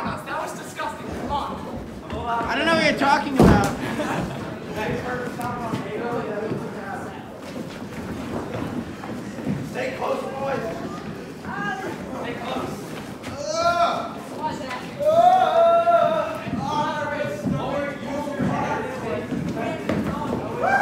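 A group of teenagers sing together in a large echoing hall.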